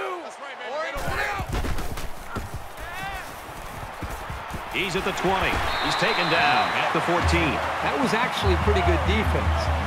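A stadium crowd cheers and roars loudly.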